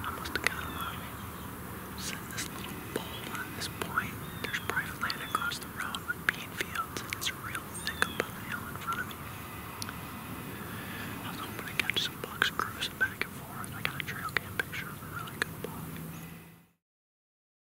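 A middle-aged man whispers close to the microphone.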